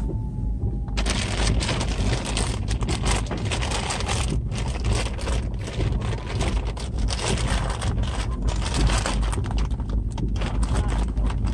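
Cloth rustles and brushes close by.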